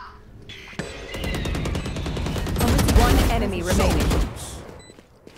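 A rifle fires rapid bursts of loud shots.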